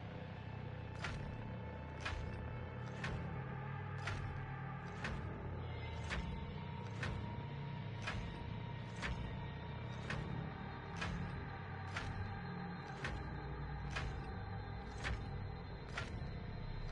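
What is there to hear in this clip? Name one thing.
A countdown timer ticks once every second.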